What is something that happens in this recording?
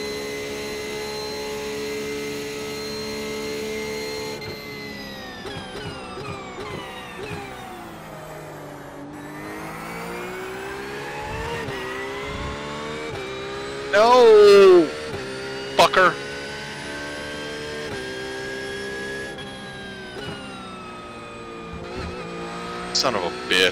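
A racing car engine revs and drones, its pitch falling as it slows and rising again as it speeds up.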